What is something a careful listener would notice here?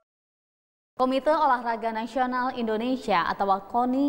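A young woman speaks clearly and briskly into a microphone, as if presenting news.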